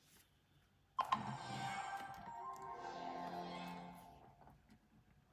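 A handheld game console plays a short startup chime.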